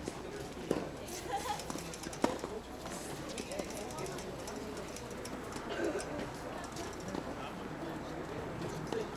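Tennis balls are struck with rackets and bounce on a hard court outdoors.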